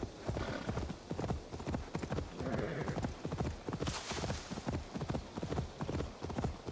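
A horse's hooves thud in a steady gallop.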